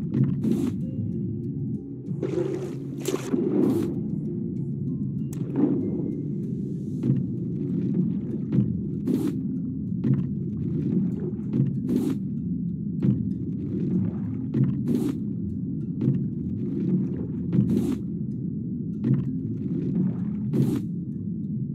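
A metal tool strikes stone in sharp, repeated blows.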